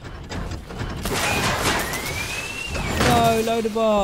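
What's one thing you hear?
A large metal robot crashes to the ground with a clanking thud.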